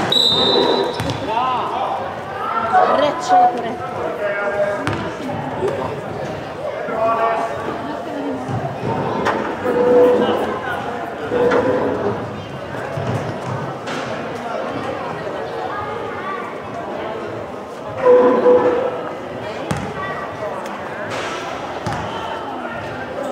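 A basketball bounces on a hall floor.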